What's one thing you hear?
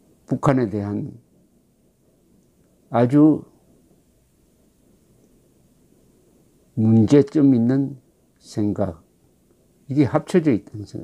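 An elderly man speaks calmly in short phrases over an online call.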